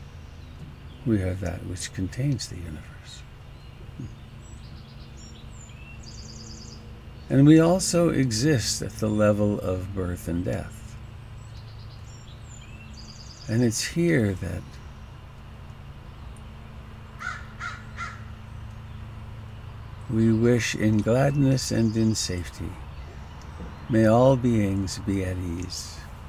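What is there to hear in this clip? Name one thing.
An elderly man speaks calmly through a headset microphone, in short phrases with pauses.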